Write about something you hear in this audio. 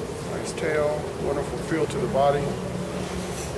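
A man speaks calmly nearby in a large echoing hall.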